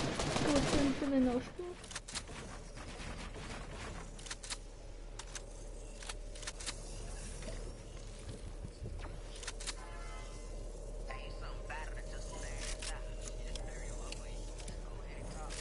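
Pieces of wall snap into place with short clicks.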